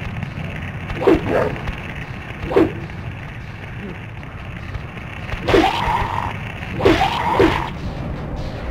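A creature lets out loud, shrill shrieks.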